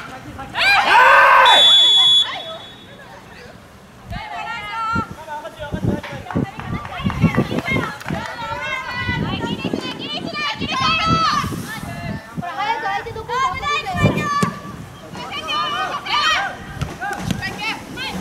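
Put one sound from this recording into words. A football thuds as a player kicks it on an open field.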